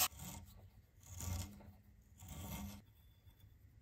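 A thread tap grinds softly as it turns in a metal hole.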